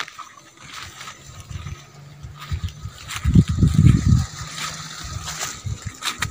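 Leaves rustle as someone pushes through plants.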